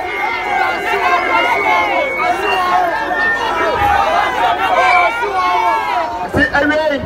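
A crowd chatters nearby.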